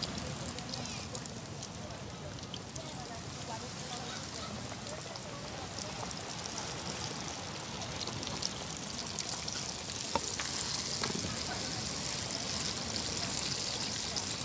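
Hot oil sizzles and bubbles steadily in a pan.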